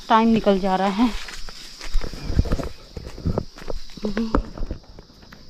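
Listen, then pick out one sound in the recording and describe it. A young woman speaks up close in a lilting voice.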